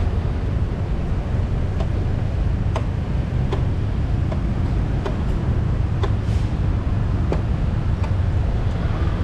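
A motorcycle engine rumbles steadily while riding slowly.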